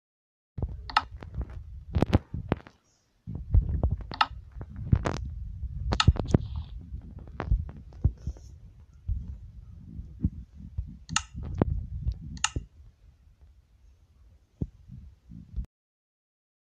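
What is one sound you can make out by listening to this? Short taps and clicks sound as items are picked and crafted.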